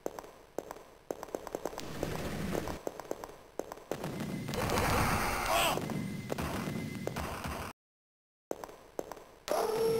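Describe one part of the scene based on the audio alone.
A gun fires rapid energy shots.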